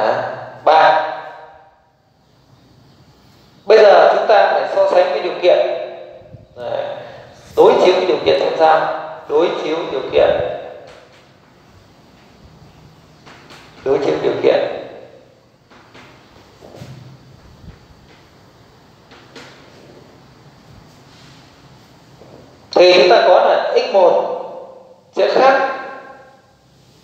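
A man speaks calmly, teaching.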